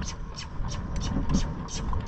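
A horse gallops past on a gravel track.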